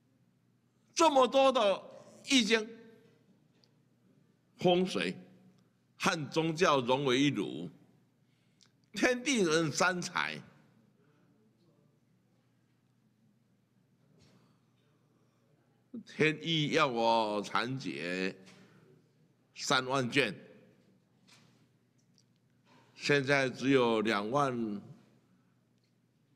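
An elderly man speaks slowly into a microphone, in short phrases with long pauses.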